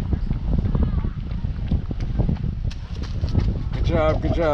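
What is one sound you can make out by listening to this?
A runner's footsteps slap on wet pavement as the runner passes close by.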